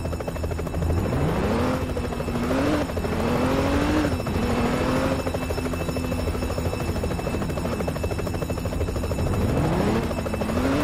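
A car engine revs up, its pitch rising and falling as it speeds up and slows down.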